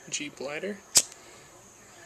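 A lighter clicks.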